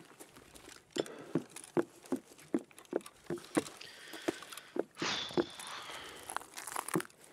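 Footsteps thud steadily on wooden stairs.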